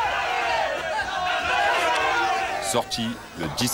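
A crowd of men cheers loudly.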